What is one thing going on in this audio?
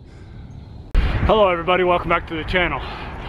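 A man talks to a close microphone with animation.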